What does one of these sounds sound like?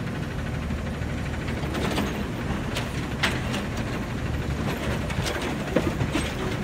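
A trash bin bangs and clatters as it is emptied.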